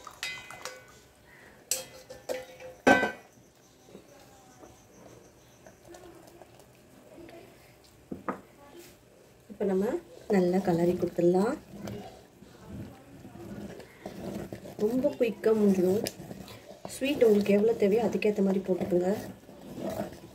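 Rice bubbles gently as it boils in a pot.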